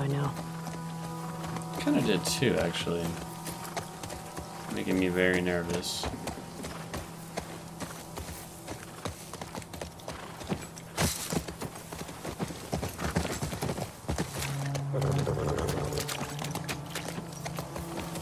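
A horse's hooves clop steadily on the ground.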